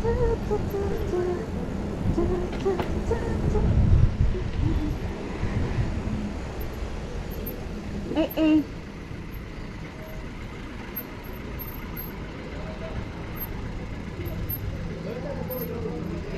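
Bicycle tyres roll steadily over asphalt.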